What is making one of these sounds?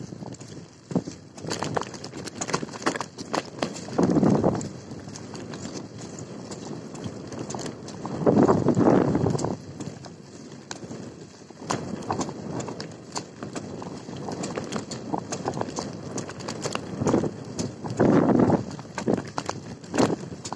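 Tyres crunch and rattle over a bumpy dirt road.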